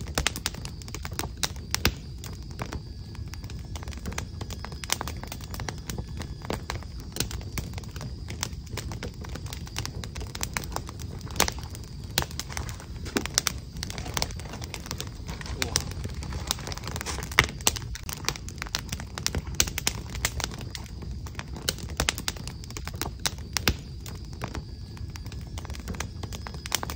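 Keys click rapidly as someone types on a keyboard.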